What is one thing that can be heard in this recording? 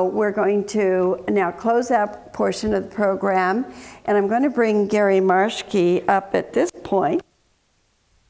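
An elderly woman reads out clearly through a microphone.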